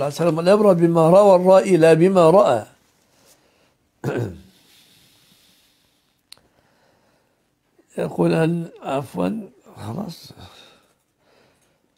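An elderly man speaks calmly into a close microphone, chanting in a melodic voice.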